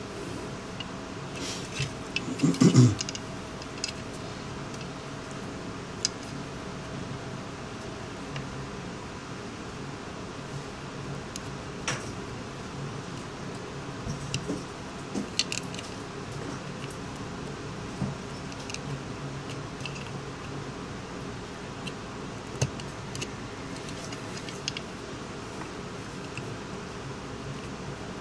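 Small plastic parts click and tap as fingers handle a phone's insides.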